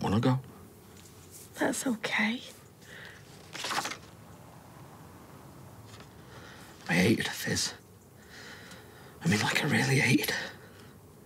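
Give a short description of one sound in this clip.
A man speaks quietly and hesitantly, close by.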